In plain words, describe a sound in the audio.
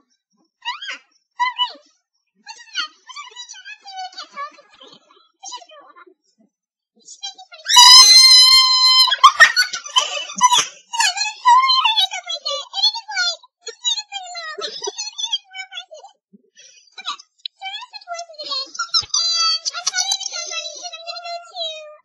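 A young woman talks close to a microphone with animation.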